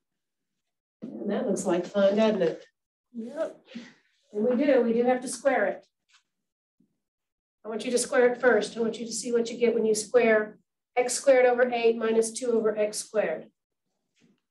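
A woman speaks calmly and clearly, explaining at length.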